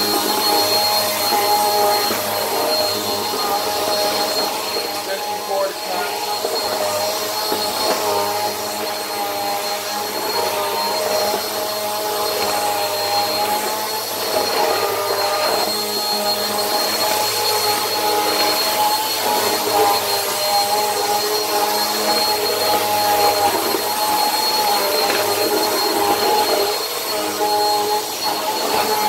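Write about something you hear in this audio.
A vacuum cleaner's brush head rolls and rattles over a hard floor.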